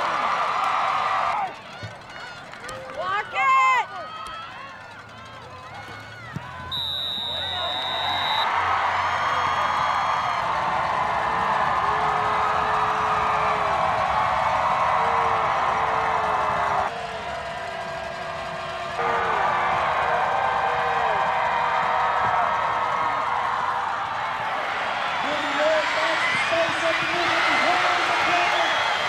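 A large crowd cheers and roars outdoors.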